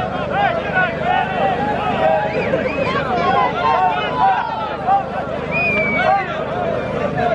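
Men shout and call out outdoors.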